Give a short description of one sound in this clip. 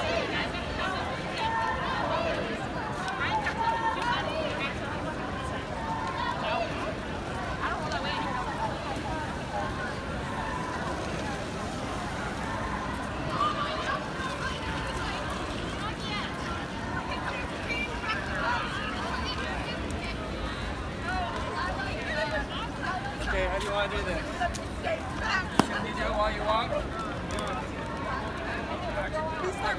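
Footsteps shuffle on pavement as many people walk.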